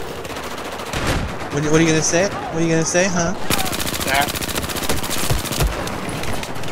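A rifle fires a few heavy shots.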